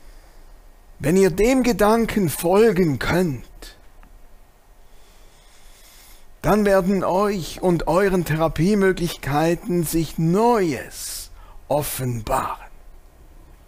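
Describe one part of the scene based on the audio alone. A middle-aged man speaks slowly and expressively into a close microphone, with long pauses.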